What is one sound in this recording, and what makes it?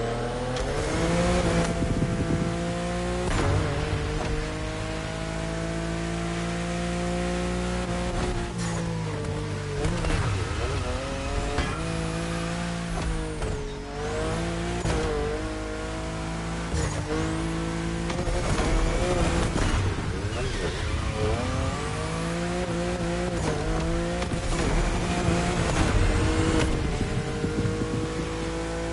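Exhaust pops and crackles as a car lifts off the throttle.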